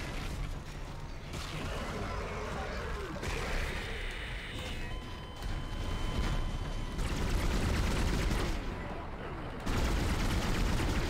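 A monster snarls and growls.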